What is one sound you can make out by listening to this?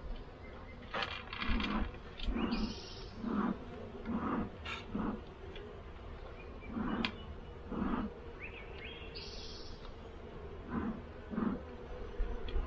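A bee smoker's bellows puff in short bursts.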